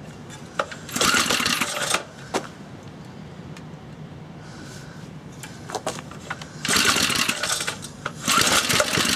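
A small petrol engine sputters briefly as a pull cord is yanked.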